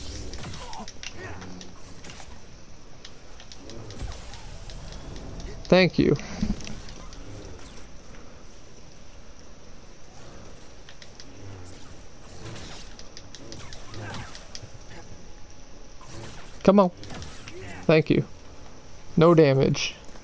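A lightsaber hums and swooshes through the air.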